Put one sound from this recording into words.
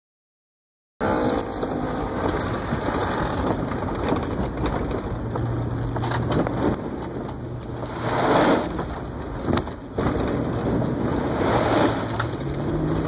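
A truck engine revs hard from inside the cab.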